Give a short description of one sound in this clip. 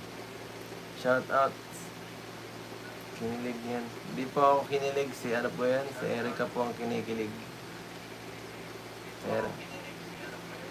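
A young man talks casually close by, in short bursts.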